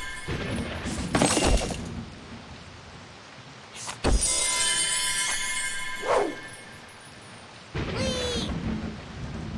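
A whooshing burst sounds.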